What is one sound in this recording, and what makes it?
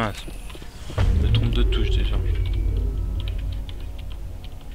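A deep, humming energy surge rumbles and slowly fades.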